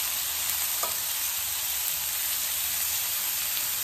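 Metal tongs click against a frying pan.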